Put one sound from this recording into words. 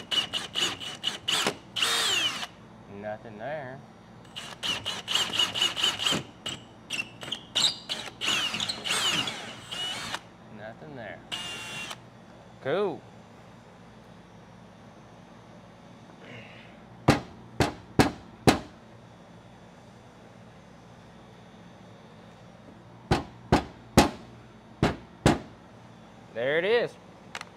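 A cordless drill whirs in short bursts, revving up and winding down.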